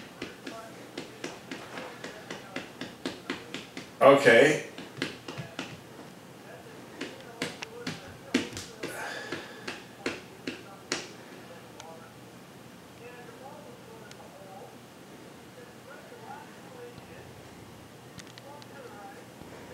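A man talks on a phone, speaking casually at close range.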